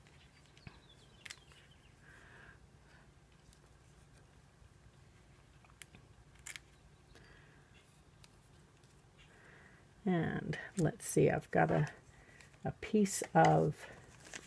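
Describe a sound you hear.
Paper rustles and crinkles softly as hands handle small cut-outs.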